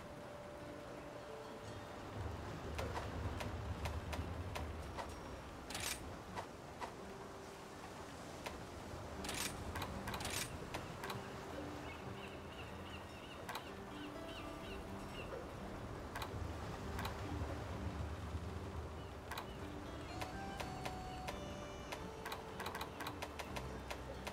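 Game menu clicks and chimes sound as options are selected.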